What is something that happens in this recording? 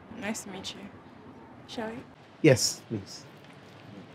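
A young woman speaks with attitude close by.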